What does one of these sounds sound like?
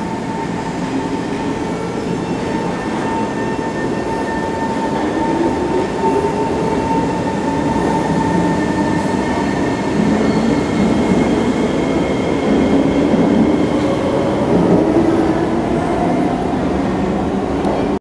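A train rumbles as it pulls away and speeds up.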